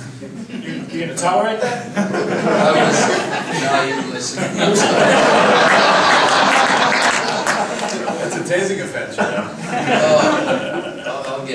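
A group of people laugh loudly.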